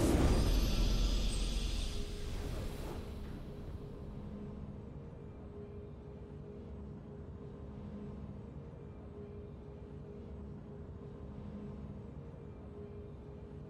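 A soft victory tune plays quietly.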